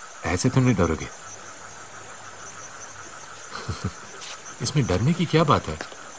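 A man speaks up close in a low, earnest voice.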